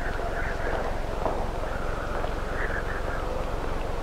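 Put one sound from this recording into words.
Footsteps sound on a hard floor.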